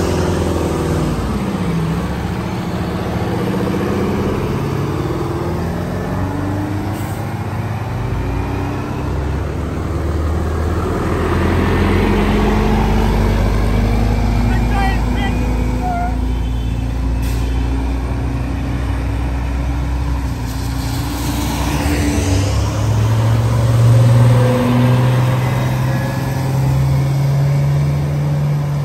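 A bus engine rumbles as the bus turns and pulls away.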